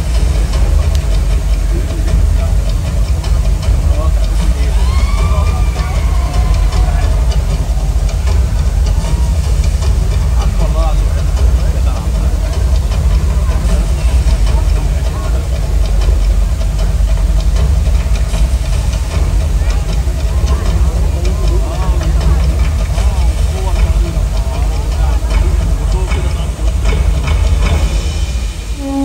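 Water churns and splashes in a large pool.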